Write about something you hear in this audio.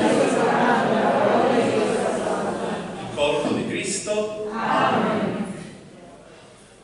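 A congregation sings together in an echoing hall.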